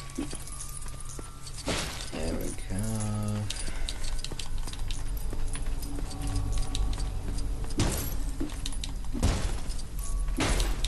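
Small coins clink and tinkle as they are picked up.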